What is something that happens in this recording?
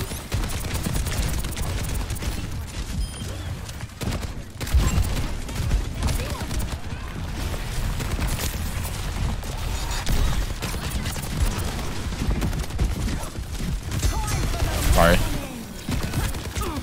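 Guns fire in rapid bursts with sharp cracks.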